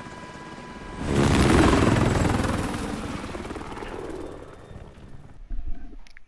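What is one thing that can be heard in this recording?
A loud rush of wind and rotor noise swells and slowly fades.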